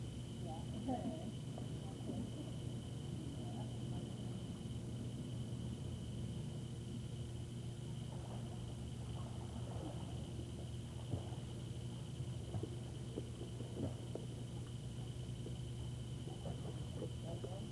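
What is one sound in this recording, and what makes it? Water splashes gently in a pool.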